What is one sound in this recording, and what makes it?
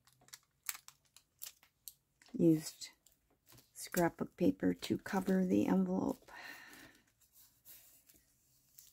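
Hands rustle and smooth paper pages.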